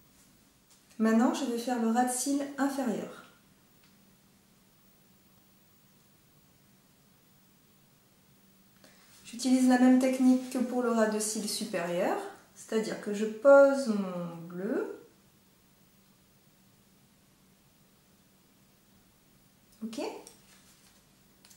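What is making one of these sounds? A woman speaks calmly and close to a microphone, in short bursts with pauses.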